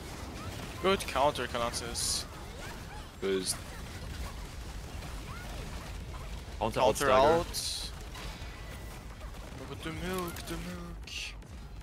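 Magic spells crackle and burst in short blasts.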